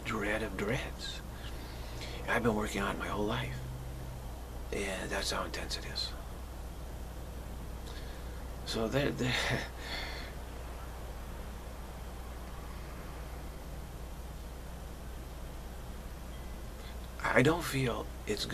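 A middle-aged man speaks calmly and close to the microphone, in short phrases with long pauses.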